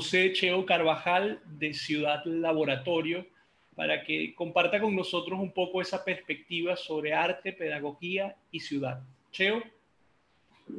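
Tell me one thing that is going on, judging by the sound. A middle-aged man speaks with animation through a headset microphone on an online call.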